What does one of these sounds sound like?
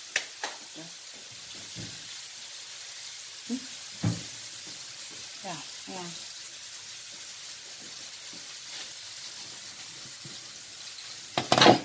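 Shrimp sizzle softly in a frying pan.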